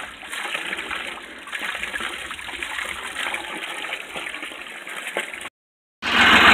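Cattle slurp water noisily.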